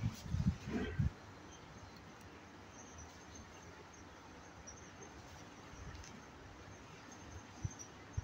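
A kitten paws and bats at a rustling cord.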